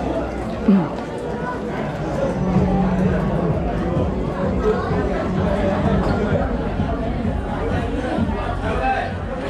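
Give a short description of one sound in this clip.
A crowd of men and women chatter indoors all around.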